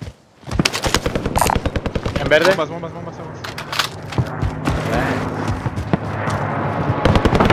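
Footsteps crunch quickly over dirt and gravel.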